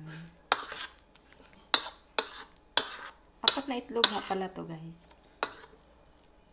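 A spoon clinks and scrapes against a bowl while mixing a thick mixture.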